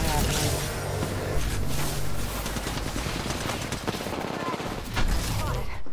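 Electric bolts crackle and zap loudly.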